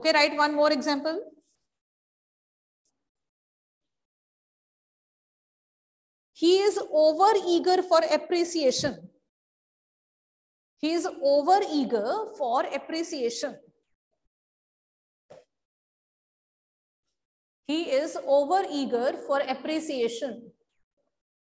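A woman speaks clearly and calmly in short bursts with pauses, close to a microphone.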